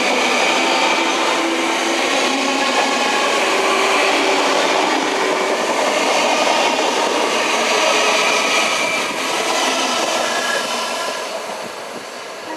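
A train rumbles and rattles past close by.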